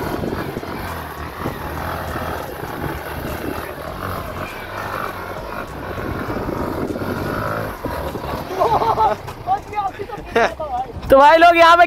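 A motorcycle engine revs loudly up and down.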